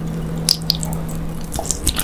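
A person slurps noodles up close.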